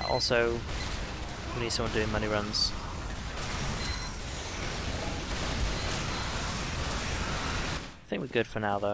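Heavy gunfire rattles steadily.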